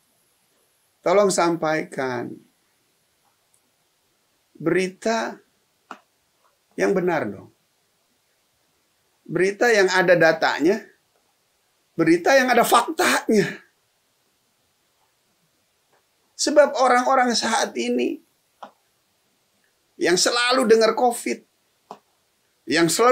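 A middle-aged man speaks emphatically into a close microphone, in short phrases with pauses.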